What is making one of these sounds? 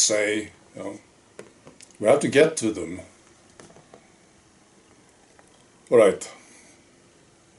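A middle-aged man speaks with animation close to the microphone, pausing between phrases.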